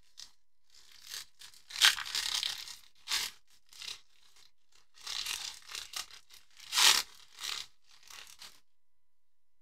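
A foil card pack crinkles and tears open in a person's hands.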